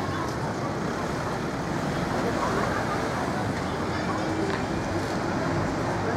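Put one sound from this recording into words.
A car drives along a street.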